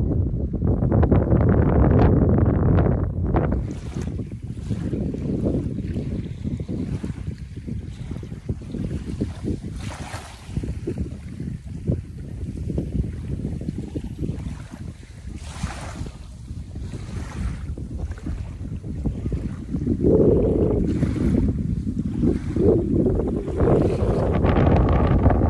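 Wind blows hard outdoors, gusting against the microphone.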